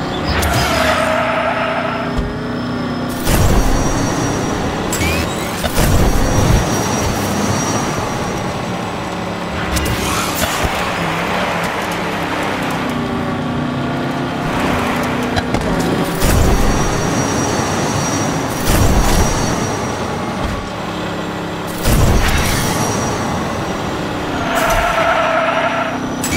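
Tyres skid and screech in a drift.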